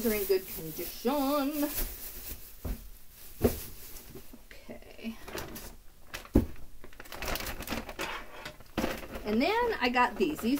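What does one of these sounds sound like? A woman talks casually, close to a microphone.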